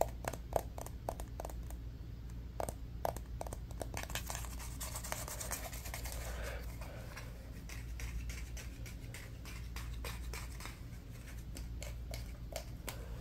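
Fingers tap and click on a small metal container close to a microphone.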